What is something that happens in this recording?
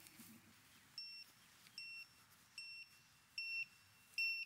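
A small drone beeps repeatedly.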